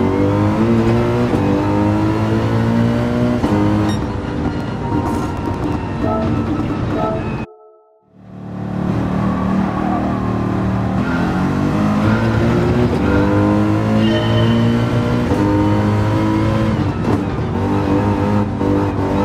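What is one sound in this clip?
A racing car engine roars loudly, revving up and dropping with each gear change.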